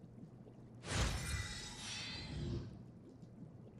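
A bright electronic chime rings out.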